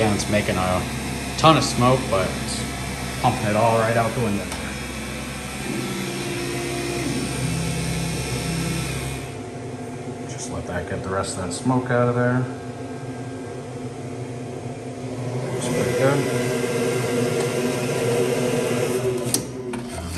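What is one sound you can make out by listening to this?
A laser engraver's fan hums steadily.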